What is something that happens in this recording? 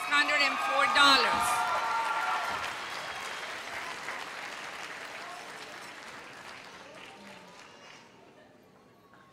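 A crowd applauds and cheers, then the applause fades.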